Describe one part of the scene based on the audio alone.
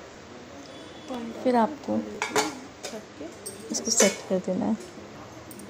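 Metal pans clink and clatter.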